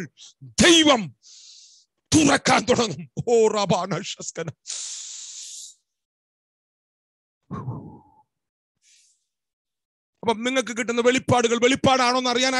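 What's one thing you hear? A middle-aged man speaks forcefully and with animation close to a microphone, pausing now and then.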